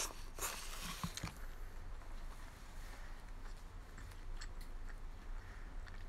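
A young woman chews food.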